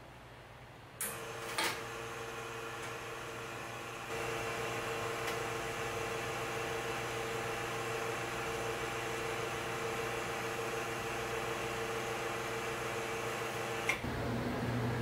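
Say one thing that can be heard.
An espresso machine's pump hums while brewing a shot.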